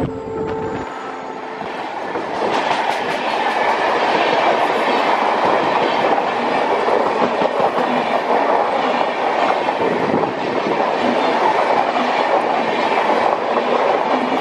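A passenger train rushes past close by with a loud rumbling roar.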